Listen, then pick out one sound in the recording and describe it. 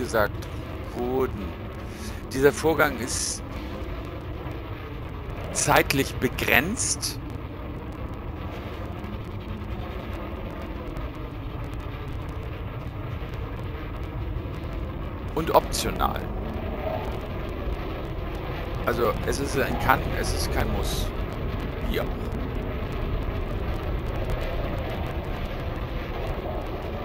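A spaceship's engines rumble steadily.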